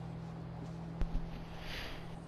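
A lighter clicks once.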